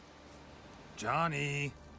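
A man speaks briefly in a low, gruff voice, close by.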